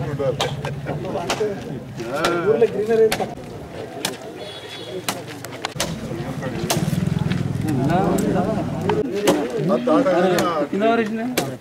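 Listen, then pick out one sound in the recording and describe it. A crowd of men and women murmurs and chatters close by, outdoors.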